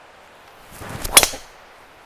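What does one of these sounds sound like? A golf driver strikes a ball with a sharp crack.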